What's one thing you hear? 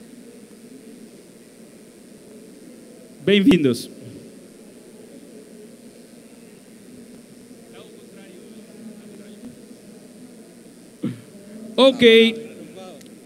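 An audience murmurs in the background.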